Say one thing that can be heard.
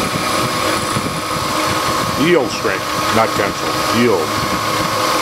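A milling machine whirs steadily as its cutter grinds through metal.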